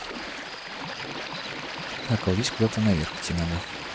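Water splashes as a figure wades through a stream.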